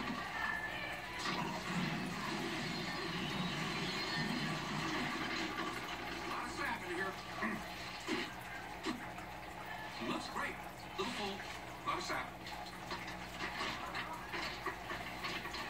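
A television plays a show in the room.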